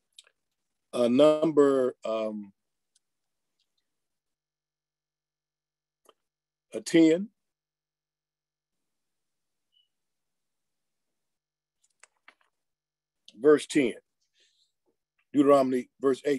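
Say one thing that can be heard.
A middle-aged man speaks calmly in short bursts, close to the microphone, with long pauses.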